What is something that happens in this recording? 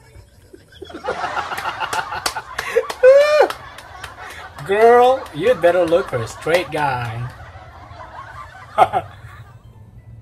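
A man laughs loudly and heartily close by.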